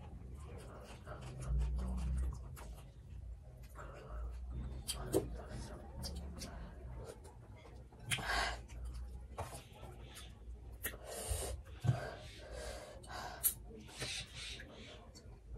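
Crisp food crunches and rustles between fingers.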